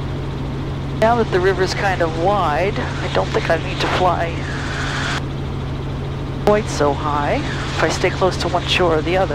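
A man speaks calmly over a headset intercom.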